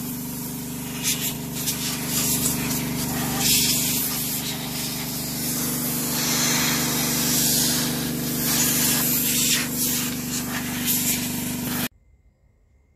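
A power tool hums steadily nearby, then cuts off.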